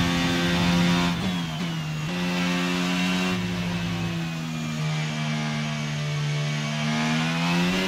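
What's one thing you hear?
A Formula 1 car engine drops through the gears as the car brakes for a corner in a racing game.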